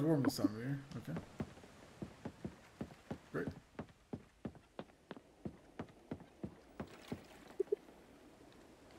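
Footsteps knock on wooden boards at a steady pace.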